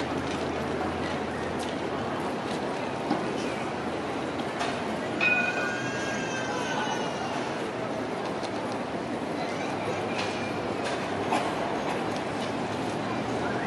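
Traffic hums steadily in a busy street outdoors.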